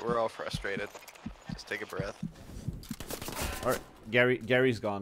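Rifle shots fire rapidly.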